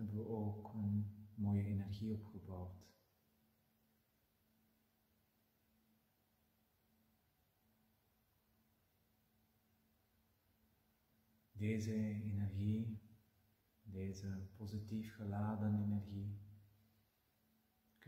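A middle-aged man speaks slowly and calmly, close to a microphone.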